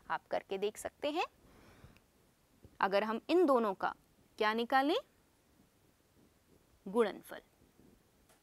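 A young woman speaks calmly and clearly into a close microphone, explaining.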